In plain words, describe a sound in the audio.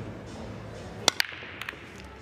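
Pool balls crack loudly as they scatter on a break.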